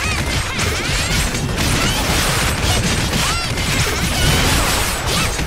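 Rapid slashing hits and bursting impacts clash in a fast fight.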